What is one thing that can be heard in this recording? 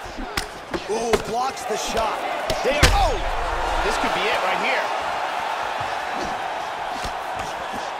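Punches land with sharp thuds.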